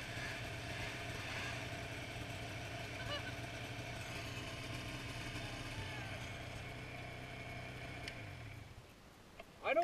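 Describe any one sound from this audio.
A snowmobile engine drones steadily nearby, then fades away.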